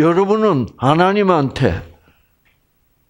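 An elderly man speaks with animation through a headset microphone.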